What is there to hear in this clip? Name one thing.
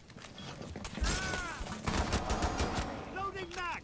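A pistol fires several shots in quick succession.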